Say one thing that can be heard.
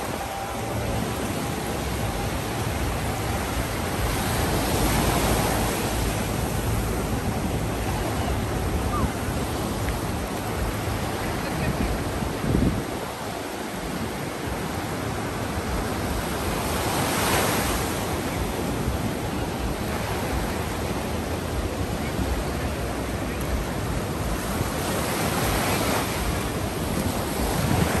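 Waves break and wash steadily onto the shore.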